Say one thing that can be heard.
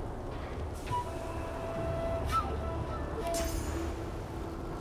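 Soft game sound effects chime and shimmer.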